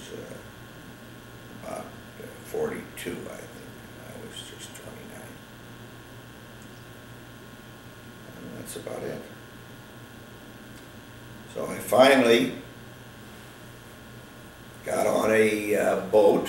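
An elderly man speaks calmly and haltingly, close by.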